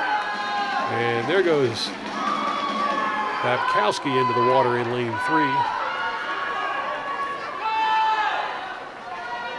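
A swimmer splashes steadily through the water.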